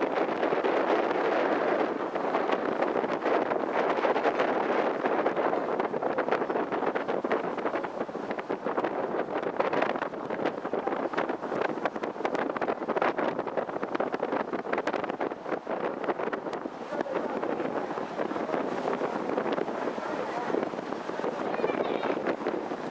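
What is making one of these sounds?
Wind blows across the open water.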